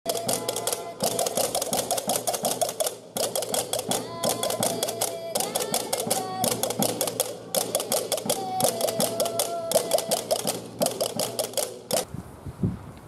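Castanets click rapidly in a lively rhythm.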